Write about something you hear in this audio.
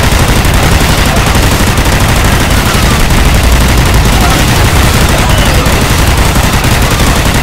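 An energy weapon fires in rapid crackling bursts.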